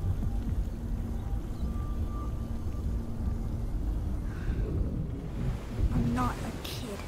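Water splashes and churns with a deep, heavy rumble.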